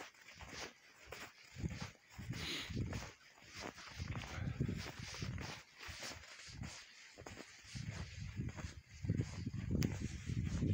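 Footsteps crunch rhythmically through snow.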